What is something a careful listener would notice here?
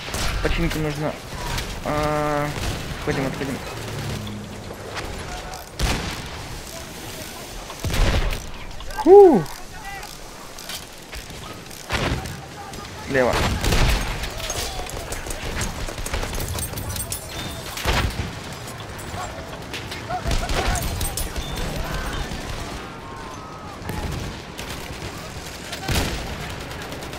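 Heavy explosions boom now and then.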